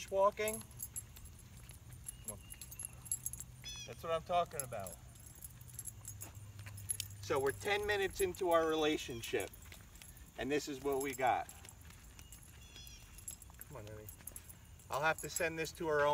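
A man talks calmly outdoors, pausing now and then.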